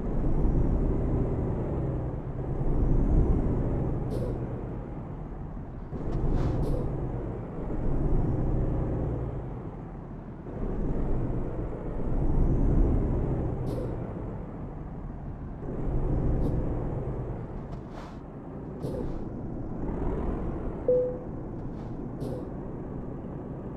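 A truck engine rumbles steadily, rising and falling as it drives slowly.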